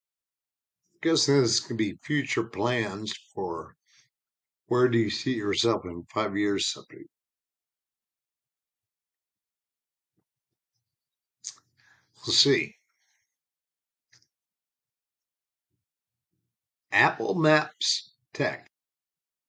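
A man talks calmly and close to a microphone, in short bursts with pauses.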